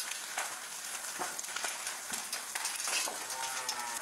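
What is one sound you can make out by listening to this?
A metal chain rattles against a steel gate.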